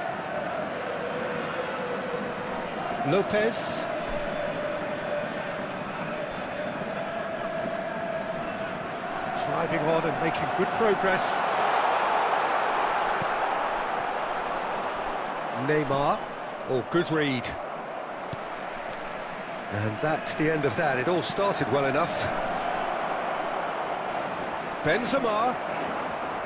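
A stadium crowd roars and cheers steadily throughout.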